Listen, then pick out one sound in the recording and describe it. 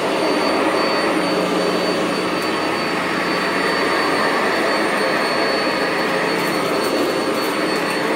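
A vacuum cleaner runs with a loud, steady roar.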